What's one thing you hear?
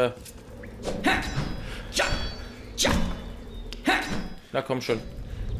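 A sword swings and strikes with sharp metallic hits.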